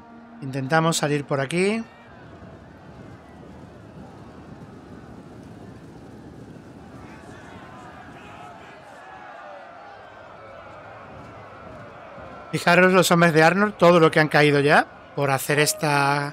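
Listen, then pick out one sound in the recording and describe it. A large army of soldiers marches and clatters in a low rumble.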